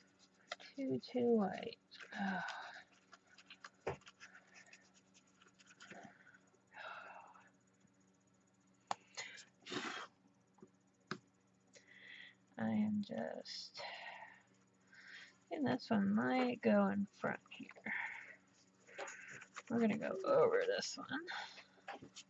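A brush strokes softly across paper.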